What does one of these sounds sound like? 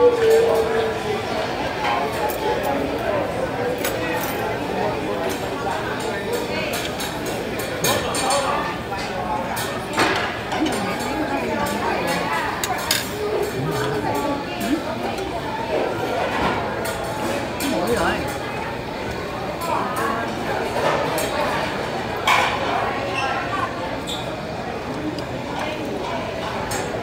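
Voices chatter in a busy room.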